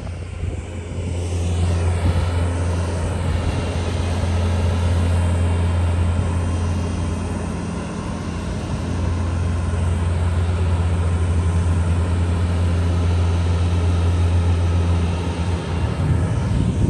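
A skid steer loader's diesel engine drones steadily nearby.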